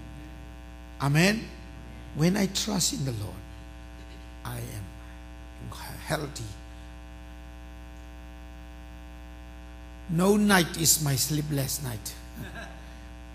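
A man preaches loudly and with passion through a microphone, pausing between phrases.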